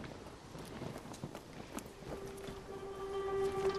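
Footsteps crunch softly on grass and dirt.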